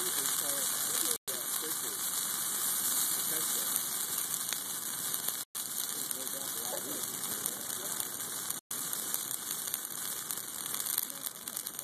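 A large fire roars and crackles outdoors.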